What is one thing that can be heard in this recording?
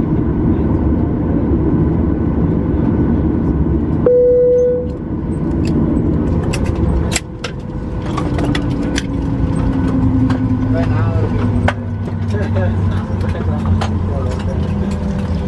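A jet engine hums steadily outside an aircraft cabin.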